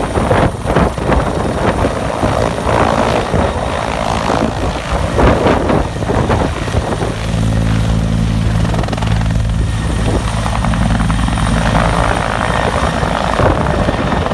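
A helicopter's rotor blades thump loudly and steadily close by.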